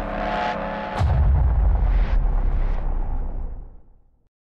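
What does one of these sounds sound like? Glass shatters with a loud crash.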